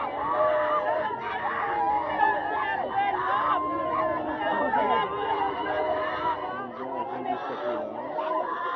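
A large outdoor crowd of men and women sing loudly together.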